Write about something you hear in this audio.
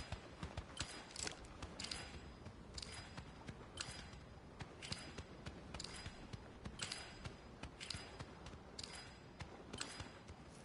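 Footsteps thud quickly on a soft surface.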